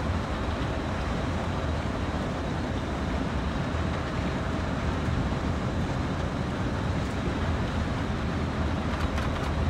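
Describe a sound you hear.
Train wheels rattle over the rails.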